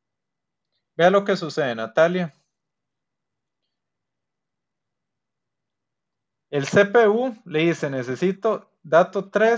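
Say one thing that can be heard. A man speaks calmly and clearly into a close microphone, with pauses.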